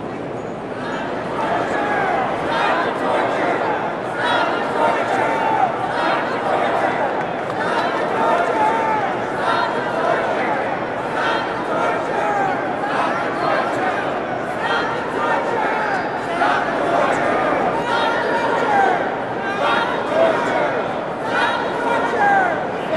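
Many voices of men and women chant loudly together.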